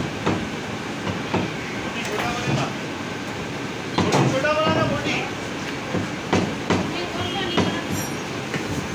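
A cleaver chops through meat onto a wooden block with sharp thuds.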